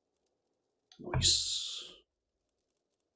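A soft game interface chime sounds as a menu opens.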